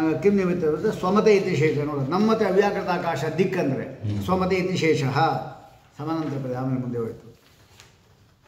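An elderly man sings in a melodious chant close to a microphone.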